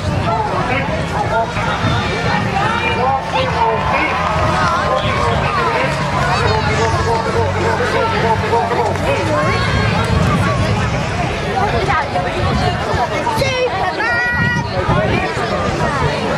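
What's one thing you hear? A crowd of children and adults chatter all around outdoors.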